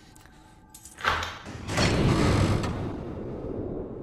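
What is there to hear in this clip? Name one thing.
A heavy door swings open with a loud rush.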